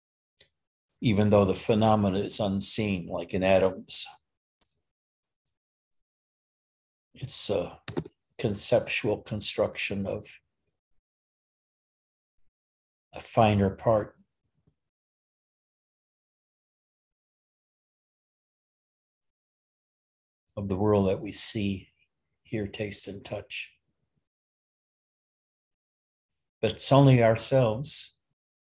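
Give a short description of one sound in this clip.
An elderly man speaks calmly and close to a microphone, with long pauses.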